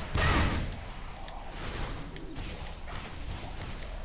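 Magic spells whoosh and crackle in short bursts.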